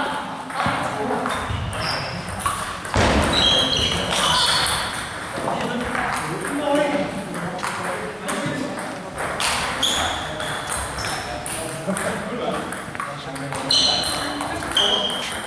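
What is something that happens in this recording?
Table tennis balls click sharply against paddles and tables.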